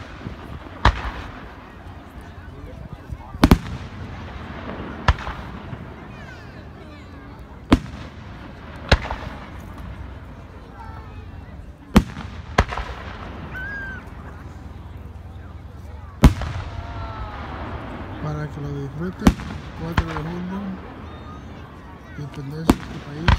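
Fireworks whistle and crackle as they rise.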